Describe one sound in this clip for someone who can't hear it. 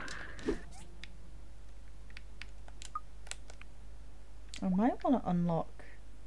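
Game menu clicks tick softly.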